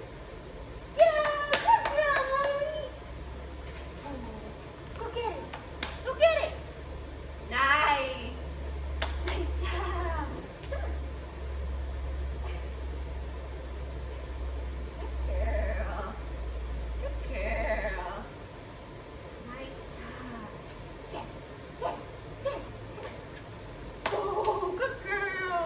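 A young woman talks to a dog with animation, close by.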